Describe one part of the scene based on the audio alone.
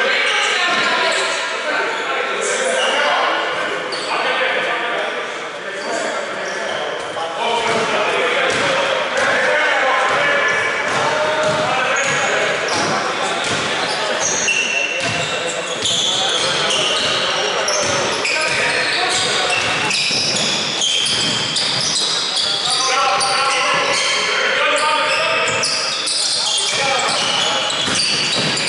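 Basketball shoes squeak on a hardwood court in an echoing indoor hall.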